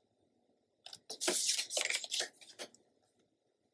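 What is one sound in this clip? Paper slides and rustles under hands.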